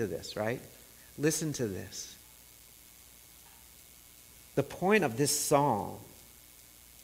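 A man speaks slowly and calmly into a microphone, in short phrases with long pauses.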